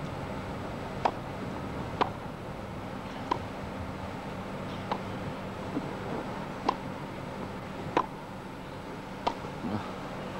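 Tennis balls are struck back and forth with sharp pops of the racket.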